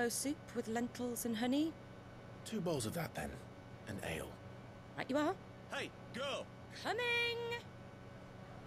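A young woman speaks calmly and warmly.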